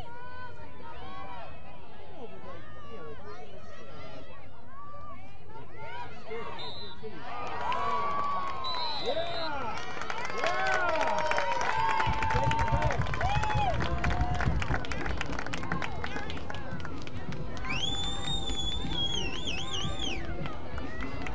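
Players shout and cheer across an open field.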